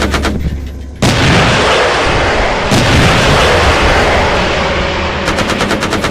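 A rocket launches with a loud roaring whoosh.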